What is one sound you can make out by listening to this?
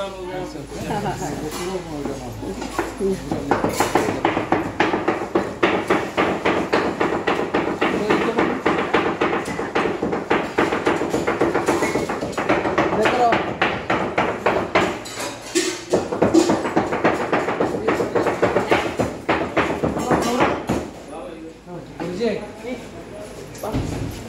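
Several men talk loudly over one another nearby.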